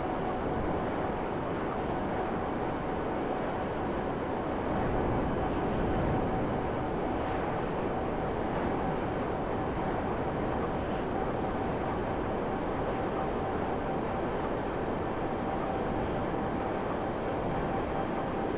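A jet-powered hover bike roars steadily as it flies.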